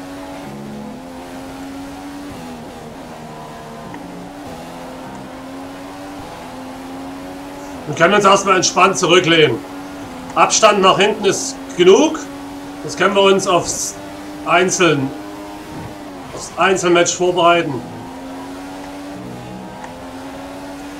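A racing car engine screams at high revs, its pitch climbing and dropping with each gear change.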